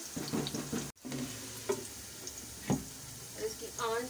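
A metal lid clanks down onto a pan.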